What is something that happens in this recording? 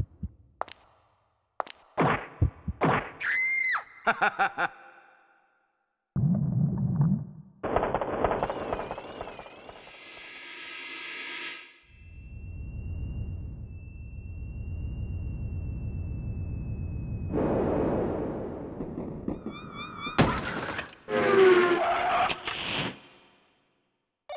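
An electronic keyboard plays a series of short demo sounds and effects, one after another.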